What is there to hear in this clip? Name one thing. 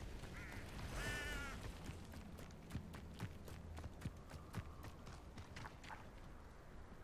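Footsteps patter quickly on a dirt path.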